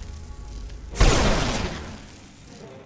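A blast of magic bursts out with a loud whoosh.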